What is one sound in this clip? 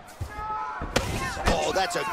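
A kick lands on a body with a sharp thud.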